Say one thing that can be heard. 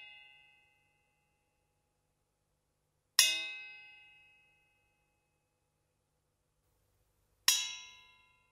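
A drumstick strikes a metal drum hoop, which rings out brightly and slowly fades.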